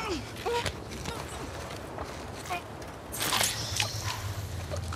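Blows and scuffling thud on the ground.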